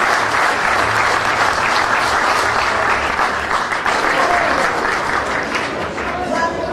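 People applaud.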